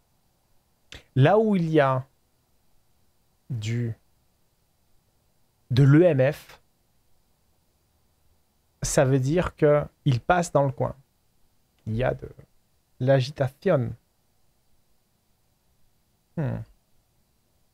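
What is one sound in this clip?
A man speaks in short bursts, close to a microphone.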